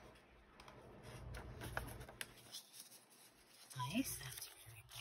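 Paper rustles and crinkles as it is handled close by.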